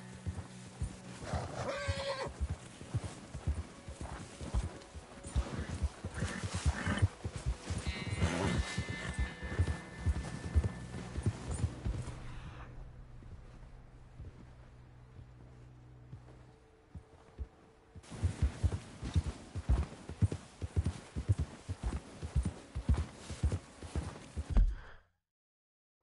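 A horse's hooves crunch and thud through deep snow at a quick pace.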